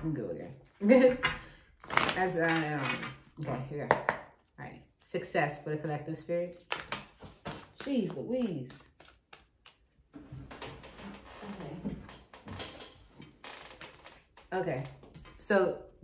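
Playing cards shuffle and riffle.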